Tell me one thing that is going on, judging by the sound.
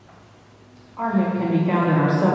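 An elderly man chants through a microphone in a reverberant room.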